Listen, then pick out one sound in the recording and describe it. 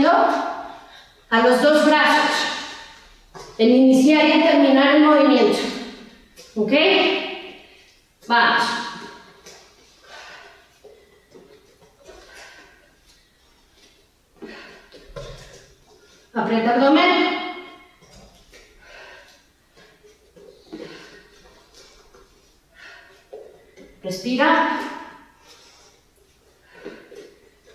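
A woman speaks loudly and energetically, giving instructions.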